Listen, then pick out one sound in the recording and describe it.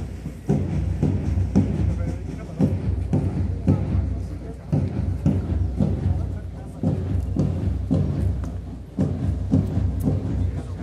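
Drums beat a steady marching rhythm nearby.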